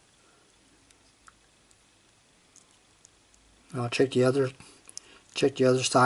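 A small slide switch clicks as it is pushed.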